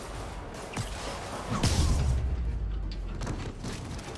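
Heavy blows land with sharp thuds.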